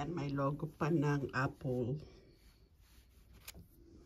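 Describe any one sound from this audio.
Fingers rub softly against cloth.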